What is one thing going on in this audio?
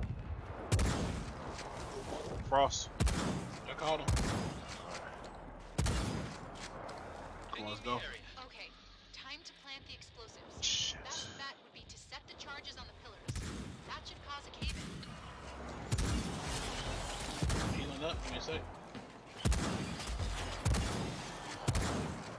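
Gunfire bursts out in loud, rapid shots.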